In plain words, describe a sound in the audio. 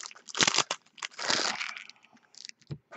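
Foil wrapping crinkles and tears as hands open a pack.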